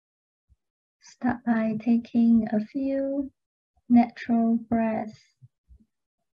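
A young woman speaks softly and calmly, close to a microphone.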